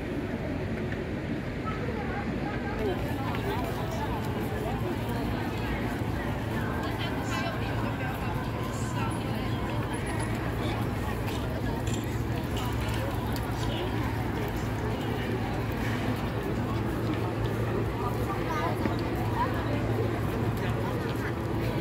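A crowd of people chatters outdoors in the background.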